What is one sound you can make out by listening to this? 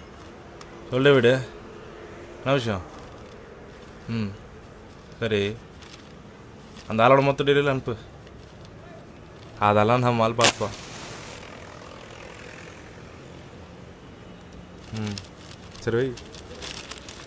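A young man talks on a phone nearby, in a calm voice.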